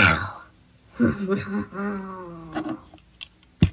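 A young man laughs mischievously through a microphone.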